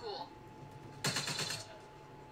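A gun fires a short burst.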